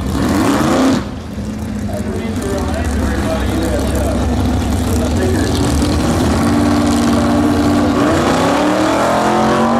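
A race car engine idles with a loud, rough rumble.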